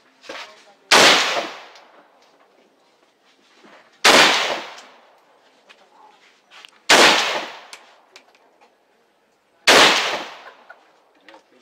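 A rifle fires loud single shots that echo briefly outdoors.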